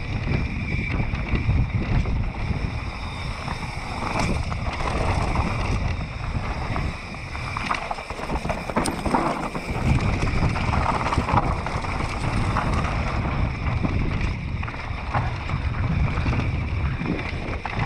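Mountain bike tyres crunch and rattle over a dirt trail.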